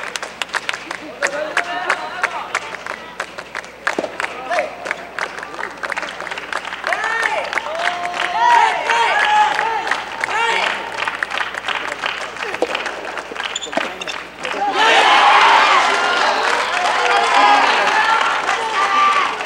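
A crowd of young spectators chants and cheers loudly.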